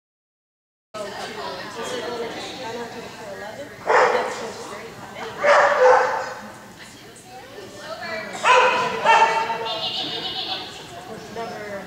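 A woman calls out loudly in a large echoing hall.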